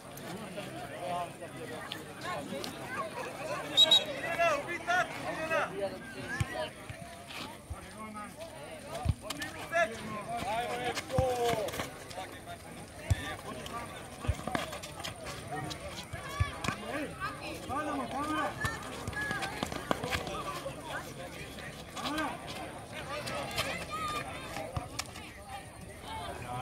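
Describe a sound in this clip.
Players and spectators shout and call out outdoors.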